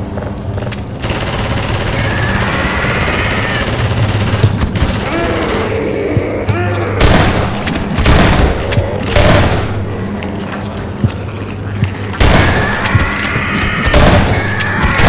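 A shotgun fires loud blasts again and again.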